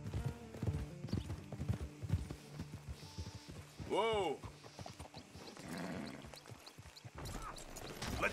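Horse hooves thud on grass at a walk.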